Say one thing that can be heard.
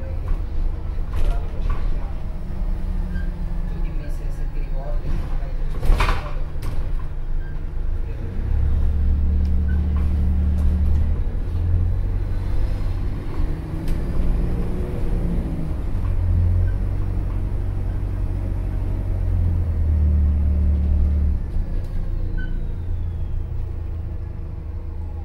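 A bus engine hums low and steady, rising and falling as the bus pulls along.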